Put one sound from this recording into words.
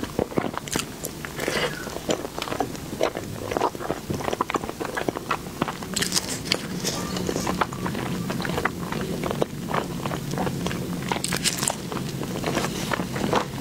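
A young woman chews soft food close to a microphone, with wet smacking sounds.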